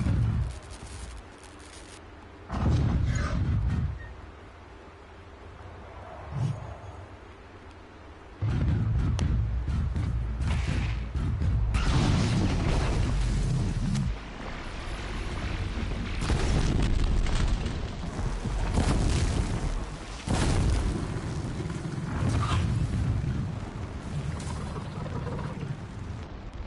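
A machine creature stomps and roars nearby.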